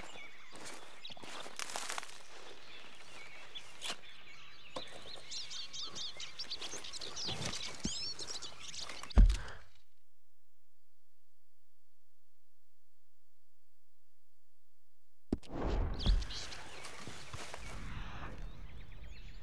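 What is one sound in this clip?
Footsteps crunch on grass and twigs.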